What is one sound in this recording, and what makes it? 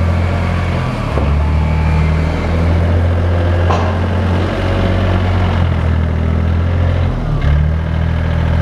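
The engine of a small wheel loader revs up and down.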